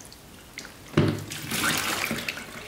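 Wet vegetables thud as they are dumped into a container.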